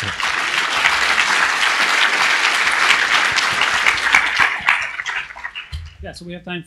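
An audience applauds and then fades.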